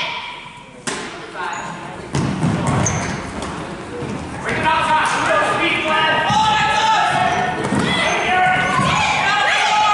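Children shout and cheer in a large echoing gym.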